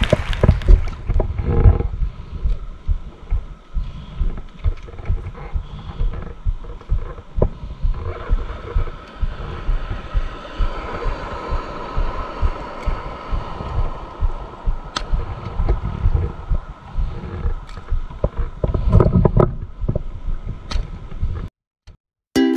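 Small waves lap and splash close by.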